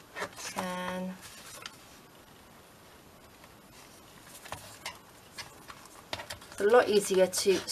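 Paper rustles as hands fold and handle it.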